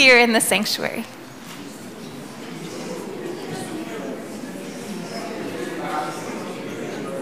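A crowd of adults chats and greets one another.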